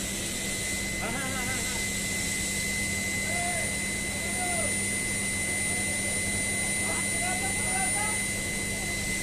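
Men call out now and then at a distance.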